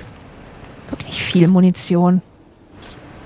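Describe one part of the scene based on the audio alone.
A young woman speaks loudly and expressively into a close microphone.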